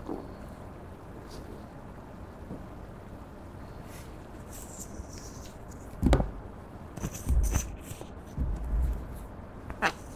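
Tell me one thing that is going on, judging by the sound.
A plastic straw scrapes and squishes soft slime in a tin.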